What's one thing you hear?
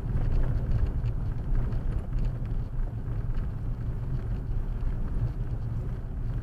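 Tyres rumble over a rough road.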